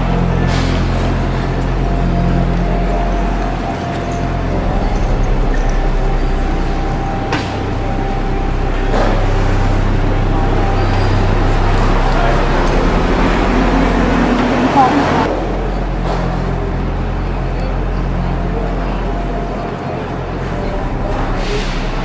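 A busy crowd of passers-by murmurs outdoors.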